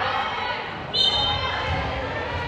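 A whistle blows sharply.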